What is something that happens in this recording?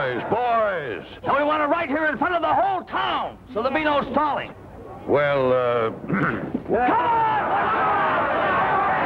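A young man shouts from a crowd.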